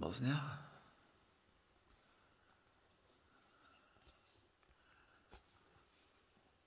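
A paper card rustles softly as fingers handle it.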